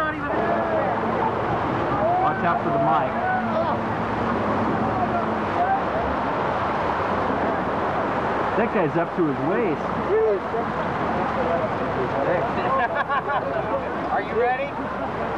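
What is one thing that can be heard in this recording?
Men shout excitedly nearby, heard outdoors.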